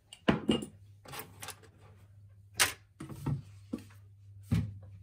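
Plastic bottles knock and scrape on a wooden shelf.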